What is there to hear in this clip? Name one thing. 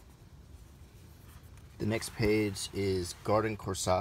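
Book pages rustle and flip as they are turned.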